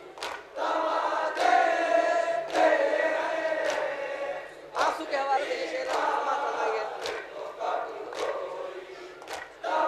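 A young man chants a lament loudly through a microphone.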